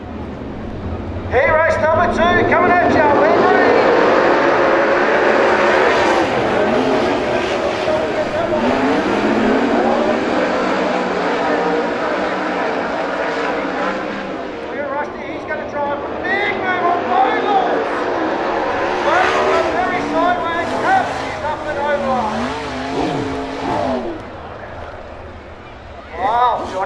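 Racing car engines roar and whine as the cars speed past.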